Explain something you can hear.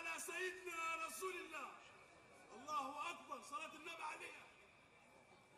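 A man chants in a long, melodic voice through a microphone and loudspeakers, with a slight echo.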